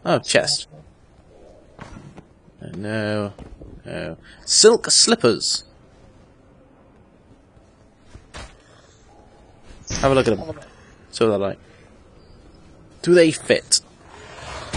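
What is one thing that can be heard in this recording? A man speaks casually into a microphone, in short bursts.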